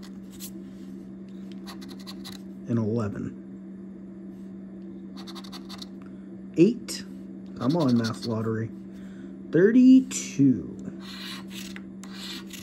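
A coin scratches repeatedly across a paper ticket.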